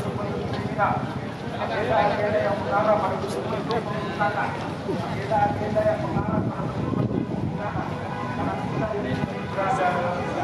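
A crowd of men chants loudly in unison outdoors.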